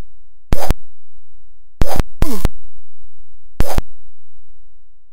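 A spell bursts with a harsh electronic crash, several times in quick succession.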